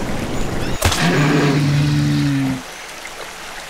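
A large creature growls with a deep, drawn-out roar.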